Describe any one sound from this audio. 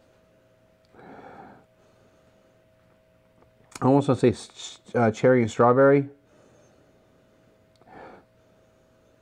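A man sniffs deeply close by.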